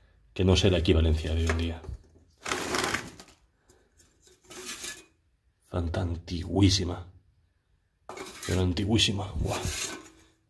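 Empty metal cans clink and rattle as they are handled.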